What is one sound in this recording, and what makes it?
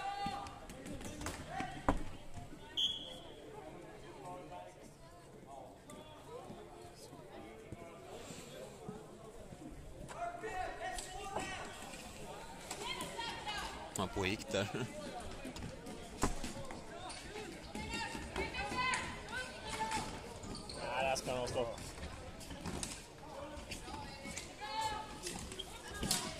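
Players' sticks clack against a ball and each other in a large echoing hall.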